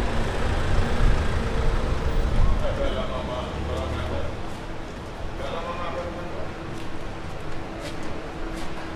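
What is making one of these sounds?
Footsteps tap on a stone pavement outdoors.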